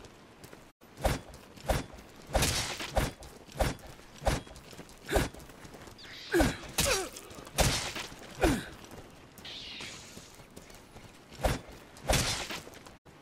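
Footsteps crunch on gravel and dry grass.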